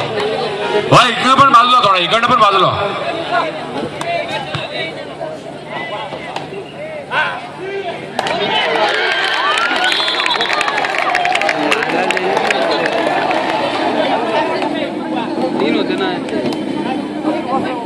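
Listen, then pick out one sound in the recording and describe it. A large crowd of spectators shouts and cheers outdoors.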